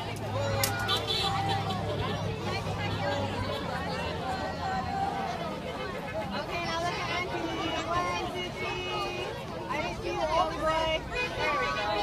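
A crowd of adults and children chatters and calls out outdoors.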